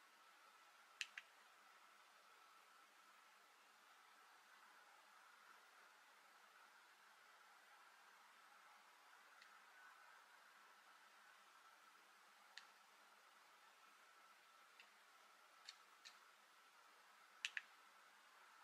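Buttons on a remote control click sharply now and then.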